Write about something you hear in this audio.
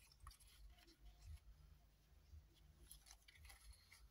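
Hands press and smooth fabric with soft scraping.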